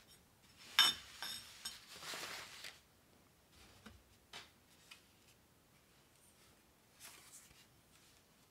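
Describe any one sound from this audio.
Paper cards rustle and slide on a carpet.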